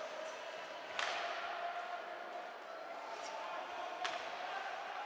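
A puck clacks sharply off hockey sticks.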